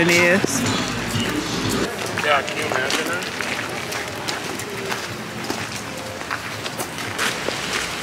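Footsteps crunch on wet gravel.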